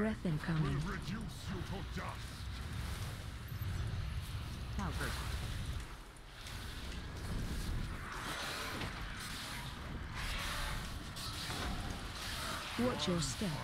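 Magic blasts and clashing effects crackle and whoosh in a game.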